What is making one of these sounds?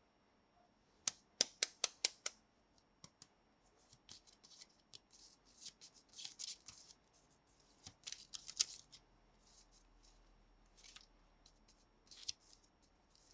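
Paper notes rustle and flick between fingers.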